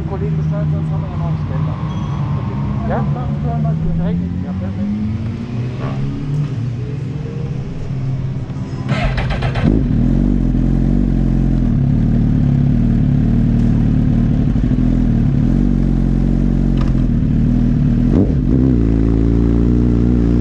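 A motorcycle engine idles close by with a low, steady rumble.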